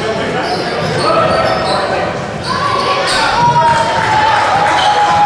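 Spectators chatter and call out in the background.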